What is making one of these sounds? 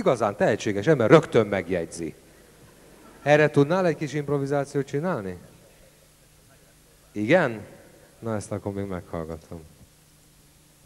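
A man speaks with animation, heard through a microphone.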